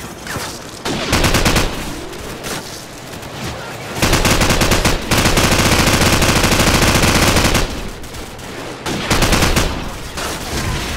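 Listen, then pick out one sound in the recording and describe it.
A machine gun fires in long, rapid bursts.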